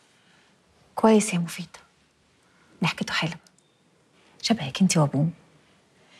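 A middle-aged woman speaks with animation.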